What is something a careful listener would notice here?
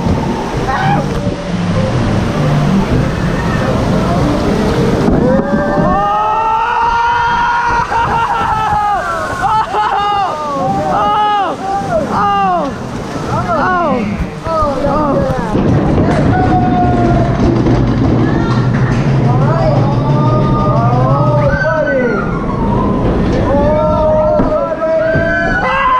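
A ride boat rumbles and clatters along a track.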